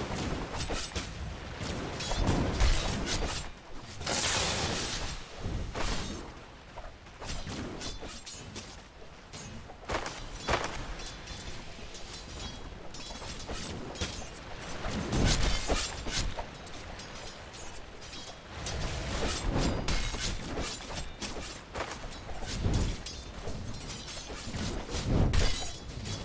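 Weapons clash and strike in quick succession.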